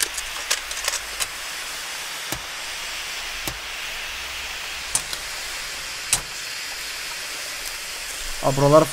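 A flare hisses steadily as it burns.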